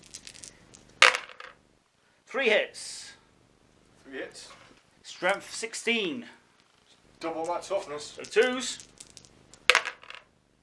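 Dice clatter and rattle in a plastic bowl.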